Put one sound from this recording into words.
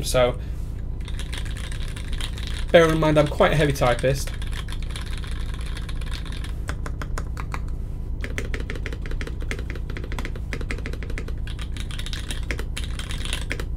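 Keyboard keys clack rapidly as someone types.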